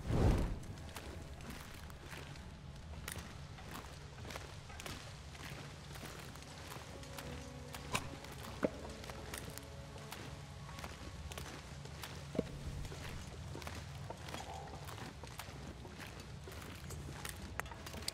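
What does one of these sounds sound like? A torch fire crackles softly.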